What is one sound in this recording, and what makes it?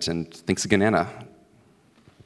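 A young man speaks into a microphone through loudspeakers in a large echoing hall.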